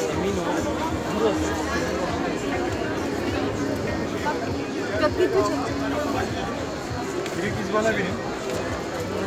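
A large crowd chatters all around outdoors.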